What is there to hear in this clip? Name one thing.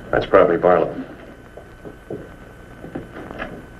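Footsteps cross a wooden floor.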